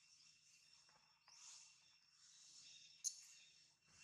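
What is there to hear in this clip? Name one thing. Dry leaves rustle as a monkey walks over them.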